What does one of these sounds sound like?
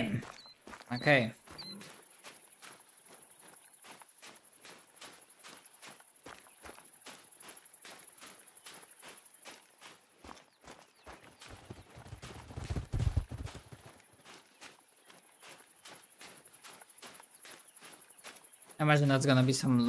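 Footsteps crunch steadily on sand.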